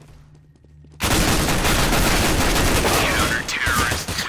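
Rapid gunshots crack out close by.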